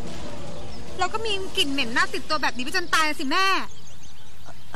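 A young woman speaks tearfully and with emotion.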